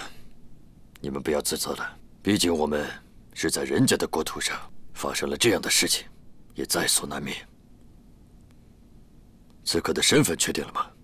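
A middle-aged man speaks calmly and firmly.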